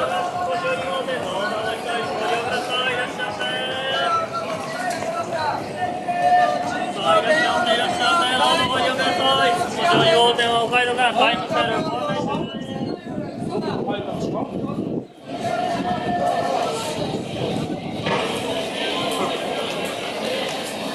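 A crowd of men and women chatter around a busy street outdoors.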